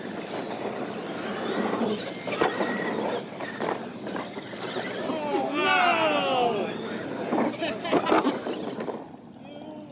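Small electric motors whine and rev as model trucks race over dirt.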